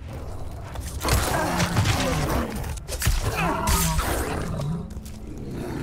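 A beast roars and snarls loudly.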